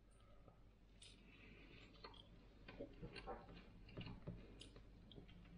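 A young man chews food with his mouth closed.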